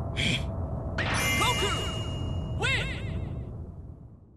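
A bright, shimmering fanfare chime rings out and fades.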